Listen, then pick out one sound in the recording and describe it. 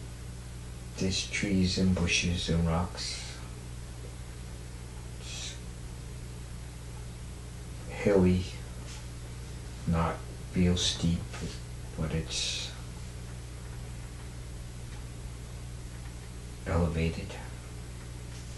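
An elderly woman snores loudly in short bursts, close by.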